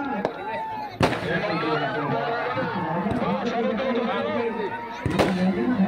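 Firecrackers bang sharply.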